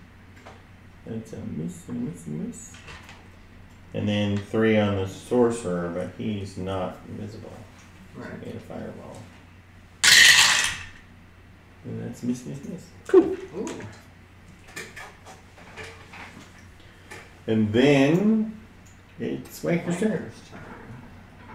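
Several men talk casually around a table, heard through a room microphone.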